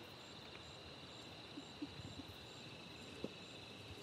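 A leopard chews on food close by.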